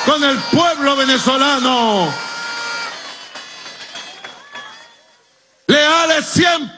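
A man speaks forcefully into a microphone, his voice ringing out over loudspeakers outdoors.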